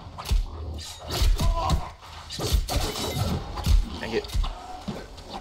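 Sword blows slash and strike in a fight.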